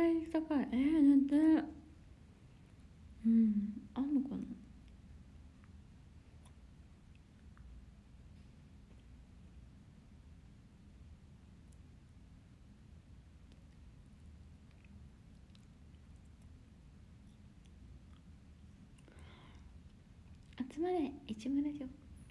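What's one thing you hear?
A young woman speaks softly and close by, with long pauses.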